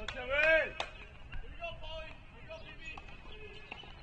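A tennis ball bounces a few times on a hard court.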